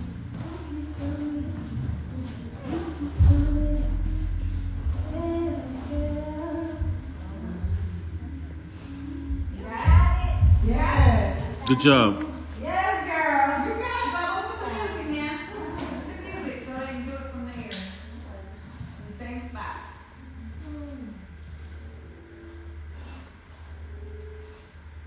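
A young woman talks with animation into a microphone in a large echoing room.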